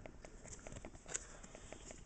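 Paper rustles and crinkles close by as it is handled.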